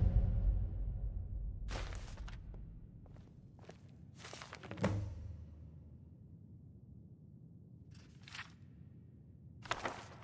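Paper pages of a book turn and rustle.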